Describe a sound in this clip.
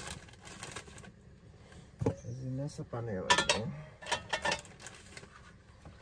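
A pot clanks on a stove.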